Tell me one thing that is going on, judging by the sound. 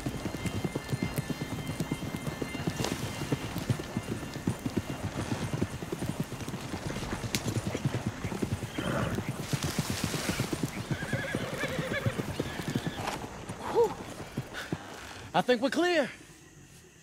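A horse-drawn wagon rattles and clatters along a rough track.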